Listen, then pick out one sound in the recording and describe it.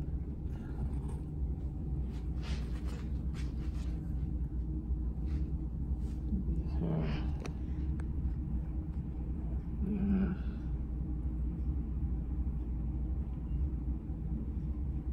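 A comb rasps through hair.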